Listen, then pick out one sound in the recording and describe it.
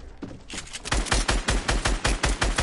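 A pickaxe strikes wood with rapid, repeated blows.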